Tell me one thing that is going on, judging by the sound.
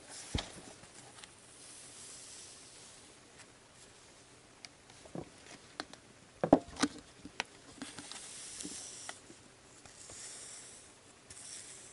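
A small tool scrapes softly through putty.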